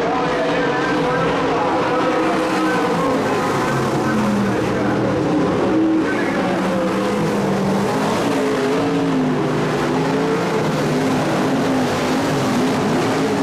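Race car engines roar steadily nearby, their pitch rising and falling.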